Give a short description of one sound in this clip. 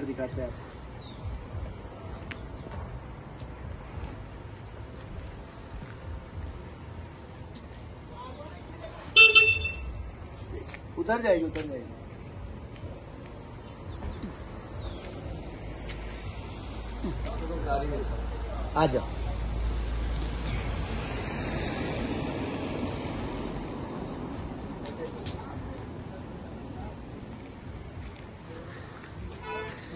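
Footsteps scuff on paving stones.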